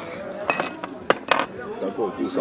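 A porcelain bowl clinks against a table.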